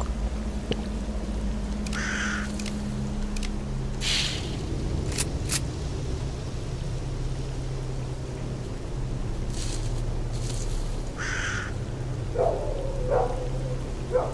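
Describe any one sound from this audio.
Footsteps crunch on dry grass and dirt.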